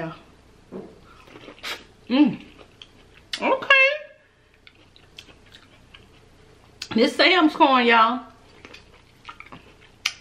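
A woman chews and smacks food loudly up close.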